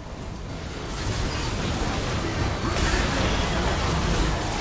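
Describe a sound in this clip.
Spell effects crackle and burst in a fight.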